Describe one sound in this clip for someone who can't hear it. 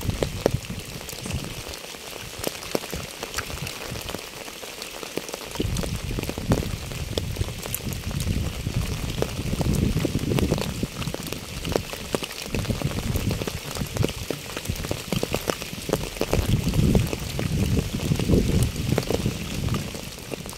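Rain patters steadily on wet pavement and fallen leaves.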